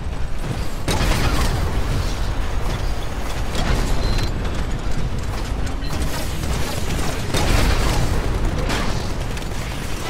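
Heavy gunfire booms in bursts.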